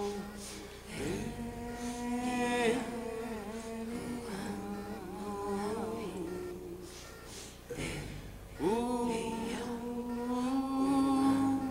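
A man sings into a microphone with a warm, sustained voice.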